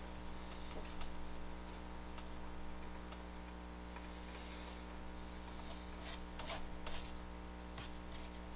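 Hands press and scrape wet clay with soft rubbing and tapping sounds.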